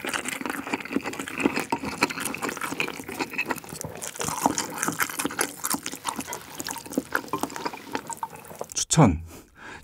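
A man slurps noodles and chews noisily, close to the microphone.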